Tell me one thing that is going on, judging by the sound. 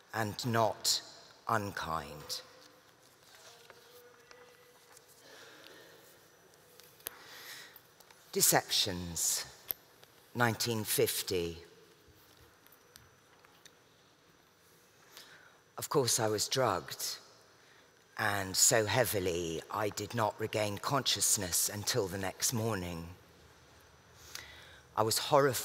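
A woman reads aloud slowly and expressively into a microphone, with pauses between lines.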